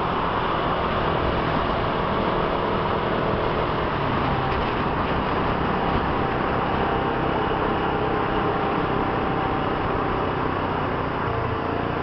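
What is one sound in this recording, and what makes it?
Traffic rumbles loudly through an echoing tunnel.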